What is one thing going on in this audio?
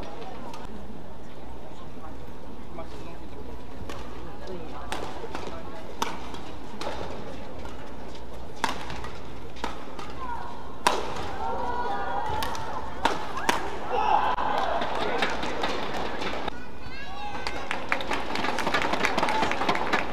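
Rackets smack a shuttlecock back and forth in a sharp rally.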